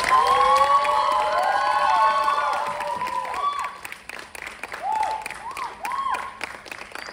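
An audience claps steadily in a large hall.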